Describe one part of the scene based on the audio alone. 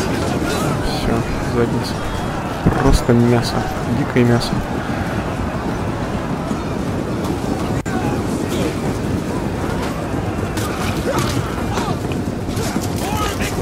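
A large crowd of men roars and shouts in battle.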